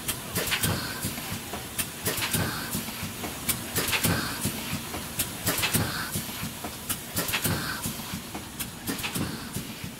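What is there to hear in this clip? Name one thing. A machine clatters and clicks in a steady rhythm.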